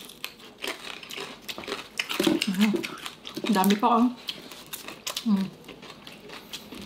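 Crispy fried food crunches and crackles in hands close to a microphone.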